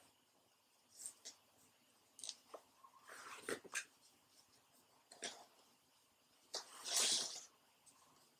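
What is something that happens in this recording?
Fabric rustles as it is wrapped around a plastic hoop.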